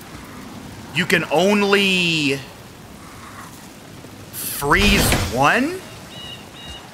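A man talks loudly and with animation into a close microphone.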